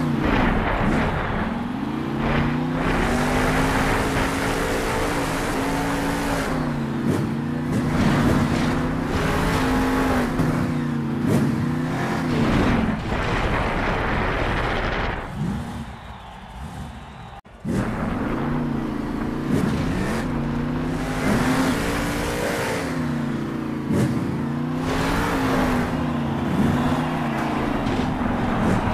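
A monster truck engine roars and revs up and down.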